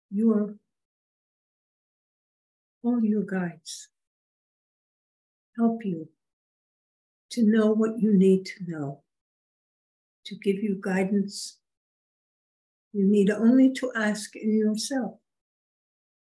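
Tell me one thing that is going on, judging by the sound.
An elderly woman speaks calmly in short phrases over an online call, with silent pauses between them.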